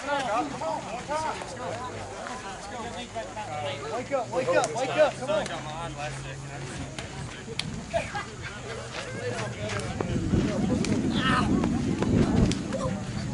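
Several people talk and call out at a distance, outdoors.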